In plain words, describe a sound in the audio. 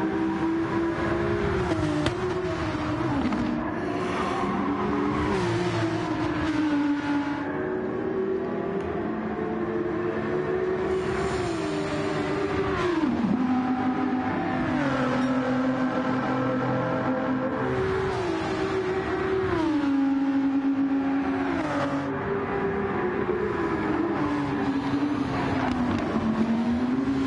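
A racing car engine roars loudly, rising in pitch and dropping sharply with each gear change.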